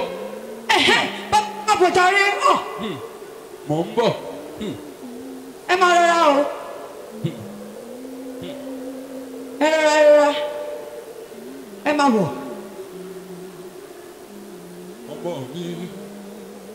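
A man shouts with animation into a microphone, heard through loudspeakers in a large echoing hall.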